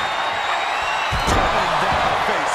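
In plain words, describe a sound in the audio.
A body slams hard onto a wrestling mat with a thud.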